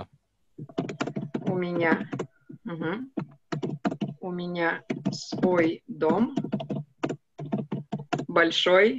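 A young woman speaks calmly and clearly through a microphone, as if on an online call.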